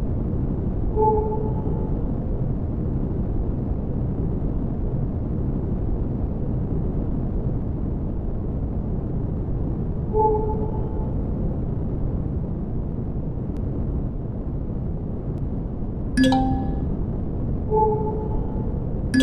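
A short electronic chime sounds now and then.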